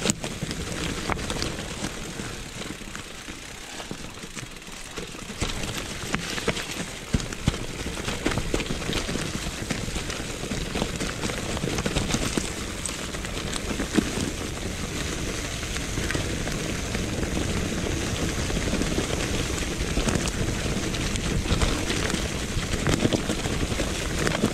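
Bicycle tyres roll and crunch over dry leaves and stones.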